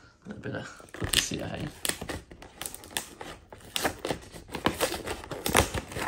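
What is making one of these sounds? Cardboard packaging rustles and crinkles as a box is handled.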